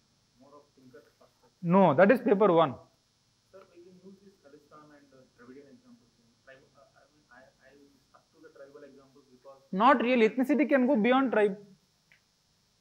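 A man lectures with animation into a microphone.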